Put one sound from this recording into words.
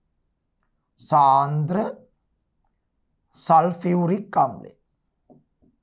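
A man speaks calmly and clearly, close by, in short phrases.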